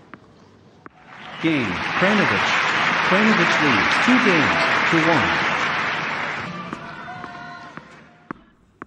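A large crowd applauds and cheers loudly.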